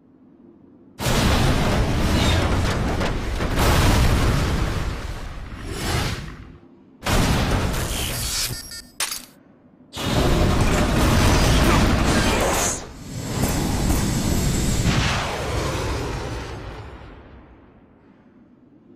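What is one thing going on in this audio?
A rocket engine roars loudly as it lifts off, then fades into the distance.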